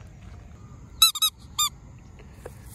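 A rubber toy squeaks a few times, sharp and high.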